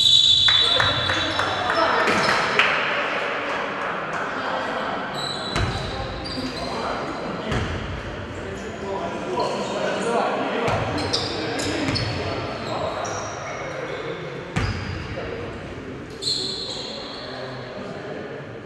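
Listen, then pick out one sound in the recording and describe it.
A crowd of spectators chatters and murmurs in a large echoing hall.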